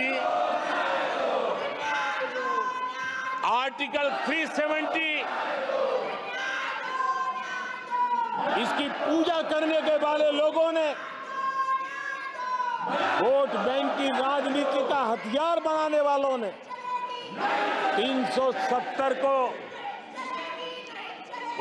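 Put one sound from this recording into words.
An elderly man speaks forcefully into a microphone in a large echoing hall.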